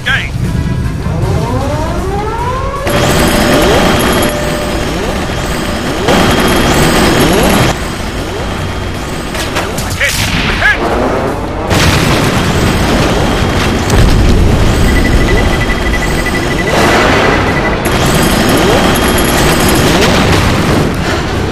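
Aircraft engines roar and whine as planes dive.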